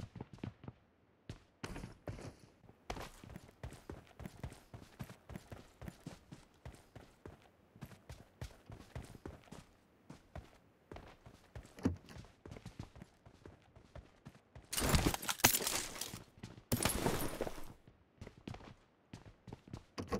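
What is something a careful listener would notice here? Footsteps patter quickly on dirt and wooden floors.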